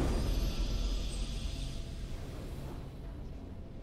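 A bright triumphant fanfare rings out and fades.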